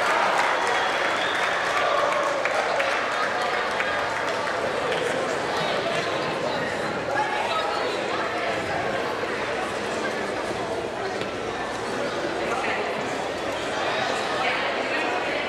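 A crowd of adults murmurs and chatters in a large echoing hall.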